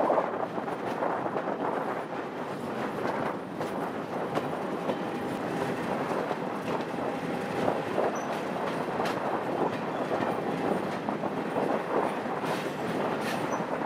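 A train's wheels rumble and clatter steadily along the track.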